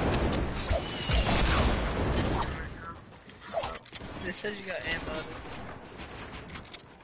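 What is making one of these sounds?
Wooden building pieces clatter and thud into place in a video game.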